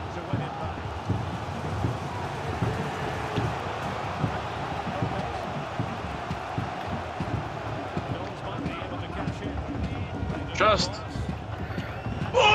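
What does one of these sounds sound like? A large stadium crowd roars steadily.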